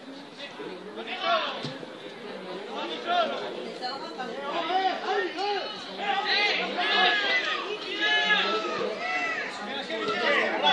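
Young players shout and call out across an open outdoor pitch.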